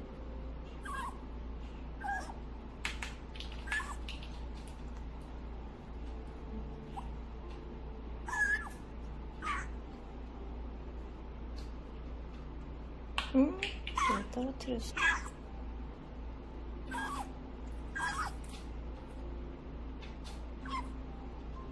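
A parrot chirps and squeaks in short, high calls.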